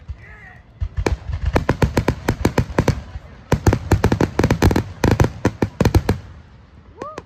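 Firework sparks crackle.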